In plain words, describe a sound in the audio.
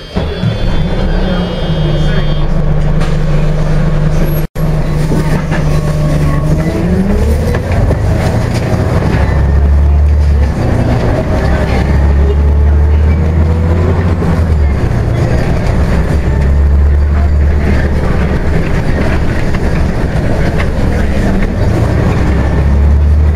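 A bus cabin rattles and rumbles as the bus rolls along.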